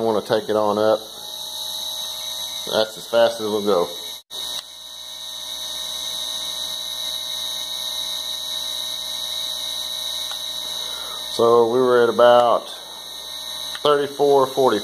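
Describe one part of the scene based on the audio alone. An electric motor whirs steadily.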